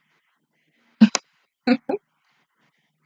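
A young woman laughs briefly close to a microphone.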